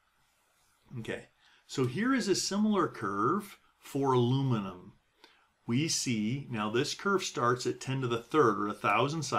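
A middle-aged man talks calmly and steadily into a close microphone.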